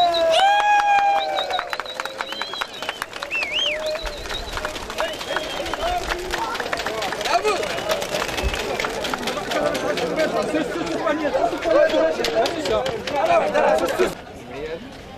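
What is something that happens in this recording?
Pigeons' wings flap and clatter as the birds take off.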